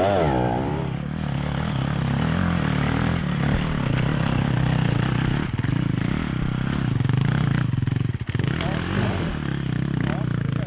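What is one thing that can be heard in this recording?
A dirt bike engine chugs steadily while climbing.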